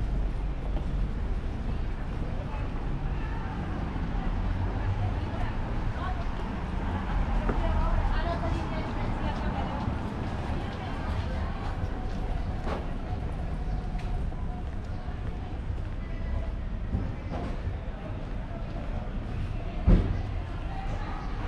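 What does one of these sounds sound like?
Footsteps tap on a paved pavement close by.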